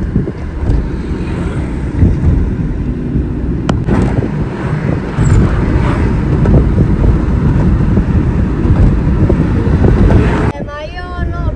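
A car engine and tyres rumble steadily on a motorway.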